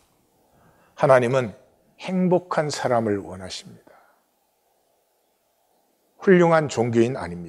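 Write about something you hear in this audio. An elderly man speaks calmly and clearly into a microphone, pausing between phrases.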